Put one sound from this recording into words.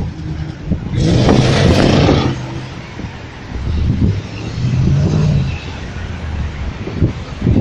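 A powerful car engine roars loudly nearby.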